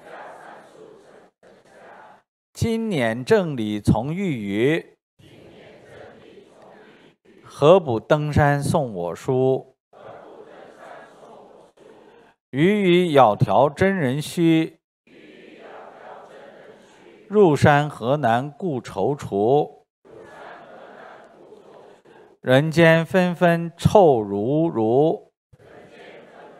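A middle-aged man reads out calmly into a microphone.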